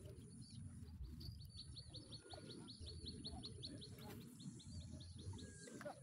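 A fishing reel clicks rapidly as a line is wound in.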